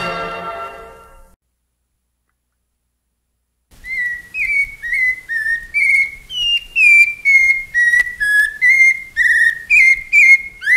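Music plays from a record.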